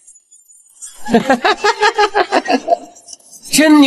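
A man laughs loudly in bursts.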